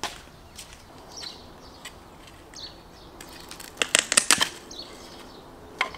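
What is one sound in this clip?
A knife splits kindling from a piece of wood with sharp cracks.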